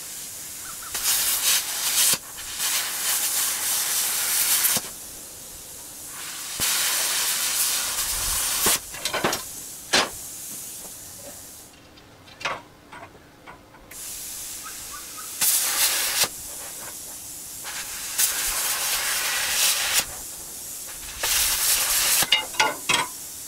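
An angle grinder cuts through steel in bursts.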